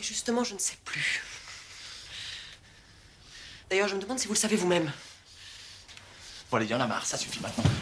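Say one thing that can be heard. A man speaks tensely, close by.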